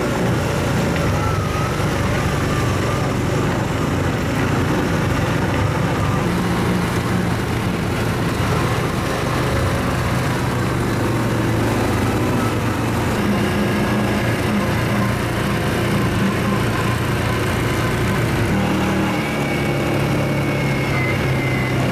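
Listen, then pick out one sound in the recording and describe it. An ATV engine rumbles steadily close by.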